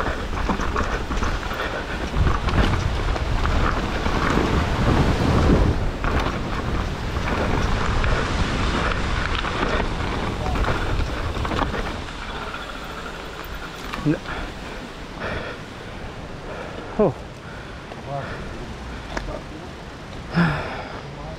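Bike tyres rumble and crunch over a rough trail.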